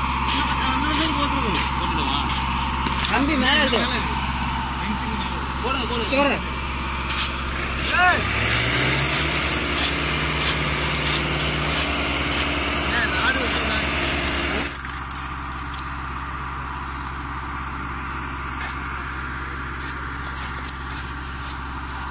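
A pole pokes and squelches in wet concrete.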